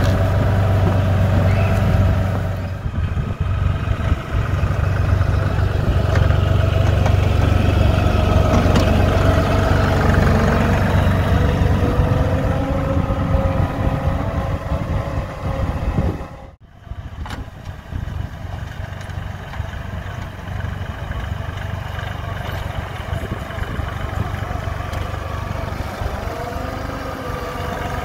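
Snow crunches and scrapes under a tractor's blade.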